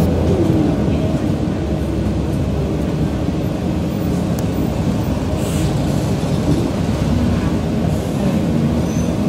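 A car engine rumbles steadily while driving along a road.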